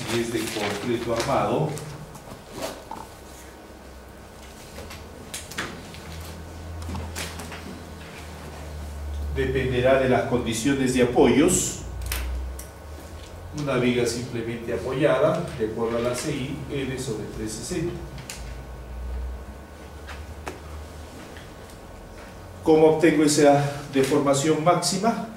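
A middle-aged man lectures calmly, speaking in bursts with pauses.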